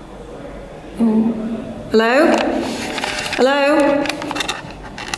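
A woman speaks close by in a hushed, nervous voice.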